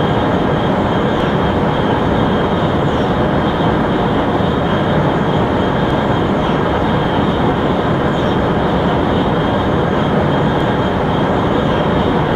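A high-speed train roars steadily along the tracks.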